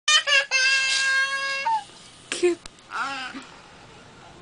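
A young child cries and wails loudly, close by.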